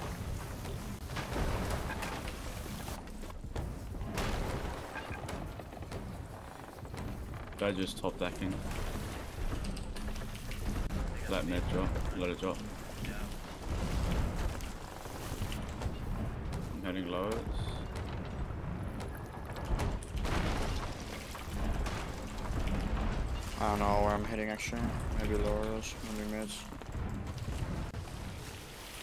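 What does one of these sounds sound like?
Water gushes and sprays through holes in a wooden hull.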